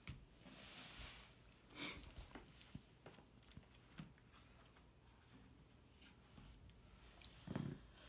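Paper rustles as a book's pages are handled.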